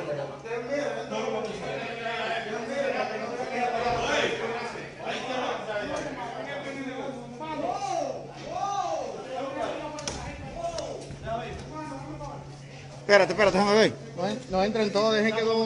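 Several men talk loudly over one another.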